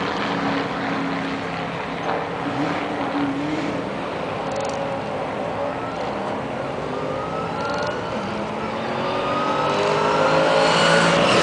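A car engine roars as it accelerates down a track, rising in pitch and growing louder.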